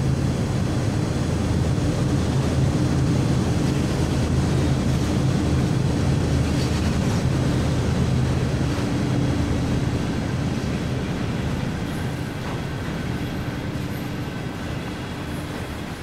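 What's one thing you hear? Diesel locomotive engines rumble and drone steadily, slowly growing fainter.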